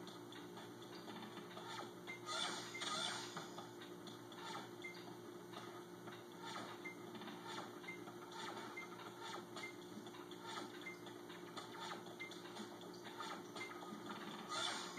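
Electronic game music plays steadily through a small speaker.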